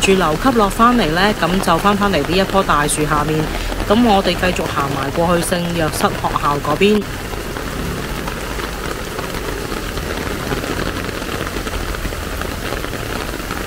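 Rain falls steadily on a street outdoors.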